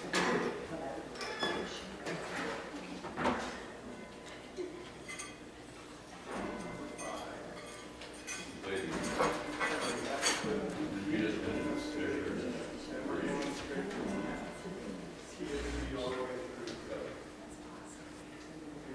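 Brass instruments play together in a large echoing hall.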